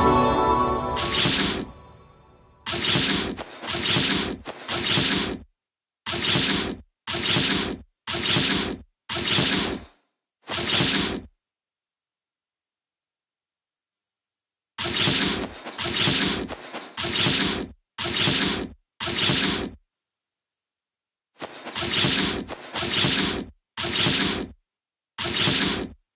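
Stone pieces scrape and click into place, again and again.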